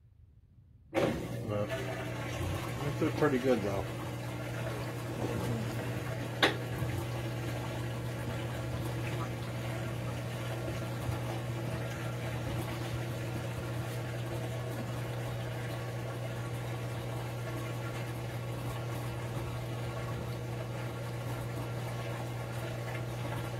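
A washing machine agitates laundry with a steady low hum.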